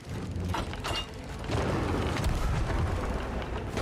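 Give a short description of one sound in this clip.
A cannon fires with a deep boom.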